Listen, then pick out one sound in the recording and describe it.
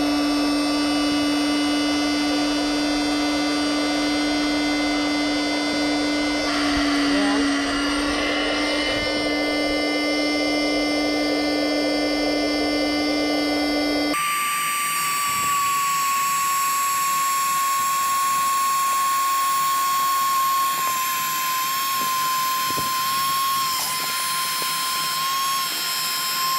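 An electric air pump hums steadily close by.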